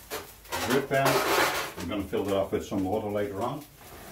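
A metal pan clanks against a grill.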